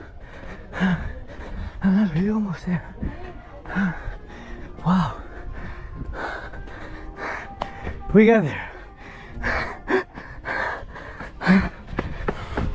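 A man talks with animation close to a microphone, with pauses.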